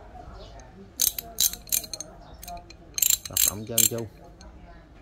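A ratchet wrench clicks rapidly as its head is turned.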